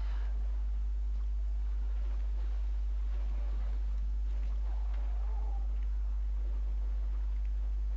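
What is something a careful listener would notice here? An oar splashes through water.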